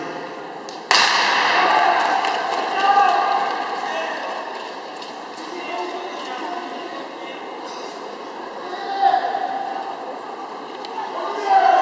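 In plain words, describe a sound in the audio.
Short-track speed skate blades scrape and hiss on ice in an indoor rink.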